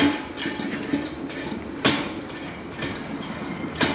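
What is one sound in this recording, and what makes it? A metal pan knocks as it is set down.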